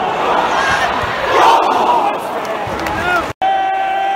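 A crowd of fans roars and cheers.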